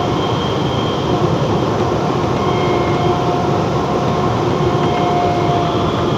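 A train rumbles steadily and loudly through a tunnel.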